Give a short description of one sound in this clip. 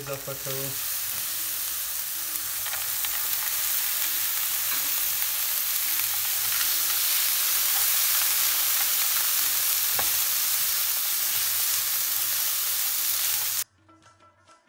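A spatula scrapes and stirs food in a pan.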